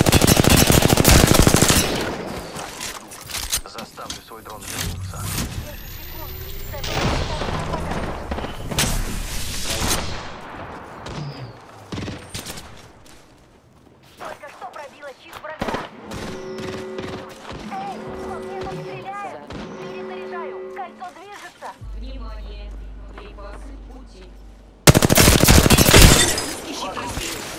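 A rifle fires rapid bursts of shots at close range.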